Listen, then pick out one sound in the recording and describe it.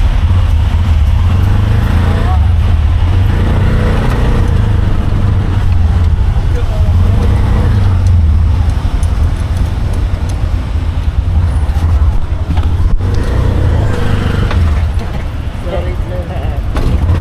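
Street traffic hums nearby.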